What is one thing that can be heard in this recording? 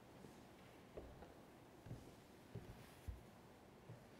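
Footsteps thud softly on a hard floor.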